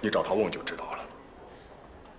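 A young man speaks urgently up close.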